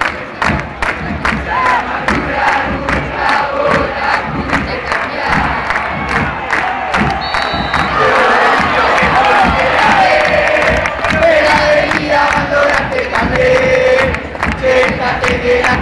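A large crowd of fans chants and sings loudly in a stadium.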